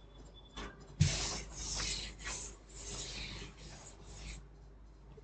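A cloth rubs and wipes across a chalkboard.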